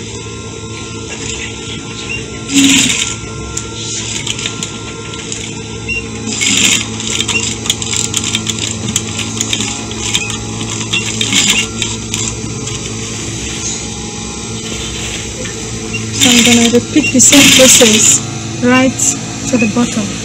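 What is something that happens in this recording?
A sewing machine hums and whirs as it stitches fabric.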